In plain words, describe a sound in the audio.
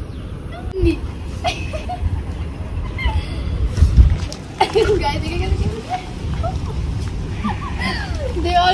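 A young woman talks softly and playfully close by.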